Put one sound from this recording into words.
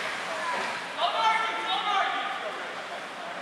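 Young players shout and call out across the rink.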